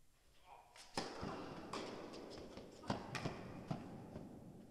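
A tennis racket strikes a ball with sharp echoing pops in a large hall.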